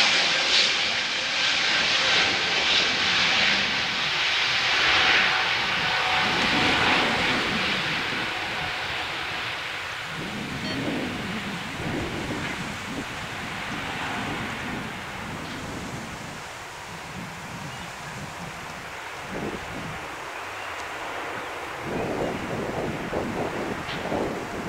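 Jet engines roar loudly as an airliner speeds down a runway and climbs away, slowly fading.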